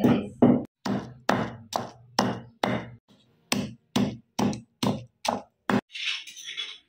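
A wooden pestle pounds steadily in a stone mortar.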